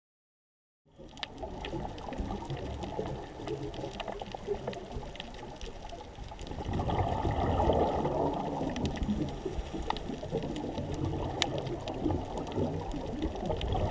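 A reef crackles and pops with faint clicks underwater.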